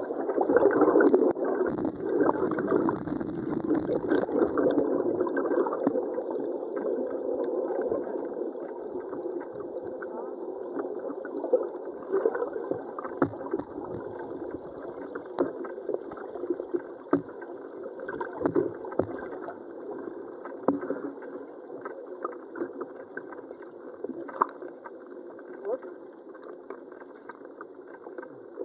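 Water churns and rushes underwater, muffled and fading slowly.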